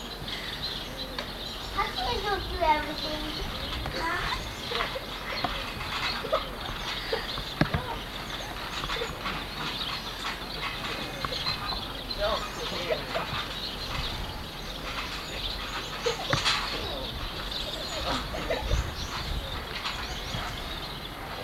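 A trampoline's springs creak and thump as children bounce.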